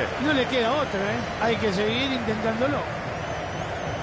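A football is kicked.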